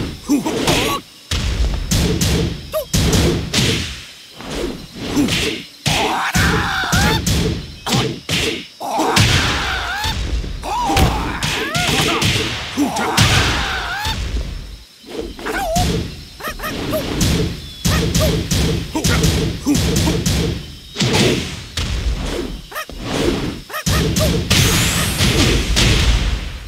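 Punches and kicks land with sharp, heavy thuds in quick bursts.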